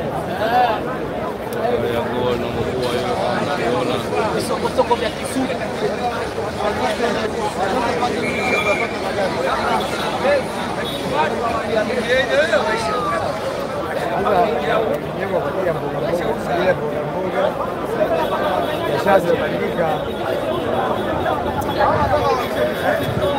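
A large crowd of men and women shouts and talks loudly outdoors, close by.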